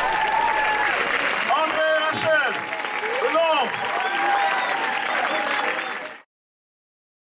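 A crowd cheers and whoops in a large echoing hall.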